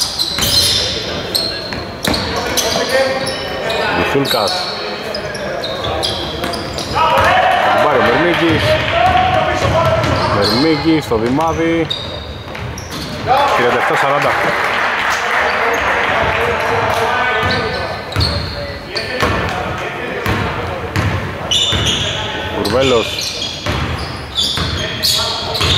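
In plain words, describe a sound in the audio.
A basketball bounces on the court with hollow thuds.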